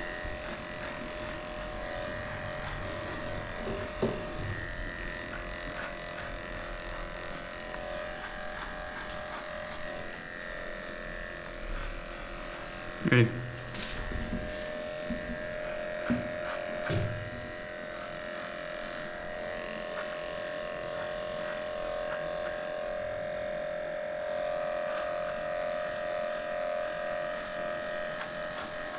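Electric clippers buzz steadily while shaving a dog's thick coat.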